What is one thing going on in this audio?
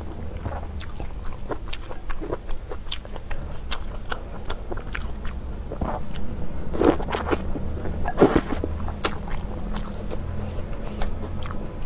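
Chopsticks clink against a glass bowl.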